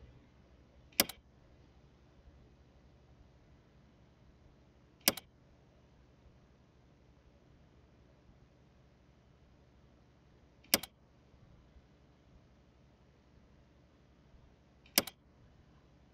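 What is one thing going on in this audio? A short click sounds each time a dialog advances.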